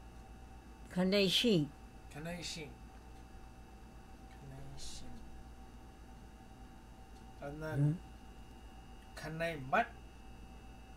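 An elderly woman speaks in short, quiet bursts close by.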